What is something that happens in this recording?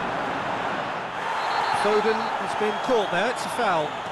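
A referee blows a whistle sharply.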